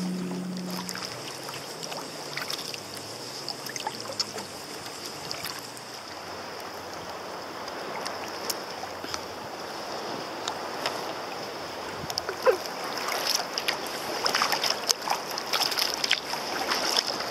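Choppy water laps and splashes against a plastic kayak hull.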